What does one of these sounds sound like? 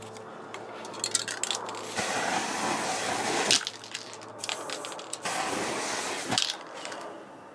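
A torch flame roars and whooshes.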